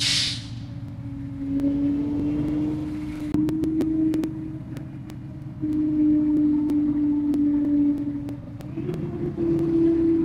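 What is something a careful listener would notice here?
A bus horn sounds in long blasts.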